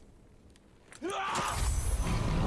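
A sword swings through the air with a sharp whoosh.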